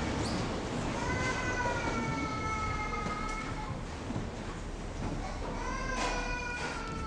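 A congregation sings slowly together in a large echoing hall.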